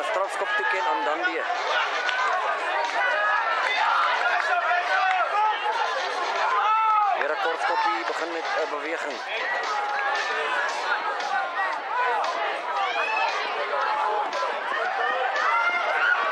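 Many young men shout and call out across an open field.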